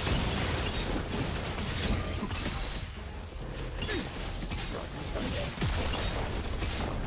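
Game spells and weapons clash and burst in a busy fight.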